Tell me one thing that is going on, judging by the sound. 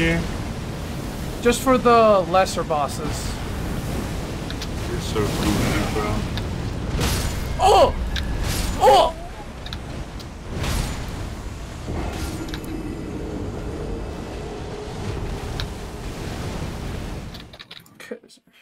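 Water splashes and churns under heavy footsteps.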